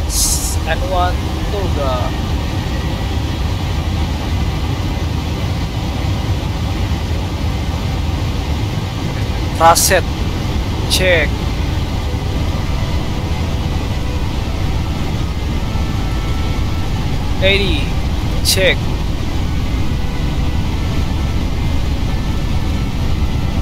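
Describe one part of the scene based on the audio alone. Jet engines rumble steadily as an airliner rolls along a runway.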